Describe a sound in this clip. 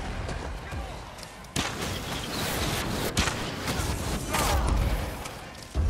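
Magic blasts whoosh and burst.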